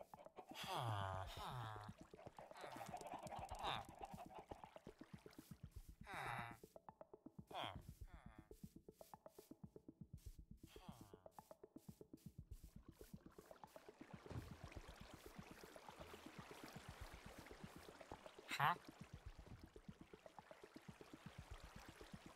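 Footsteps tread quickly and evenly on grass.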